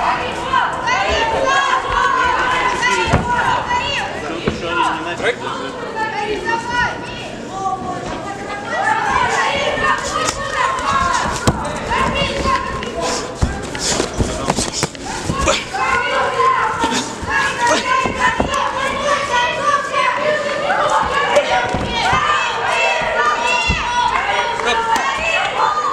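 Spectators and coaches shout loudly in a large echoing hall.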